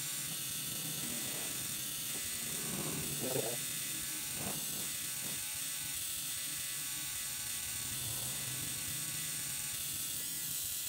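A tattoo machine buzzes steadily close by.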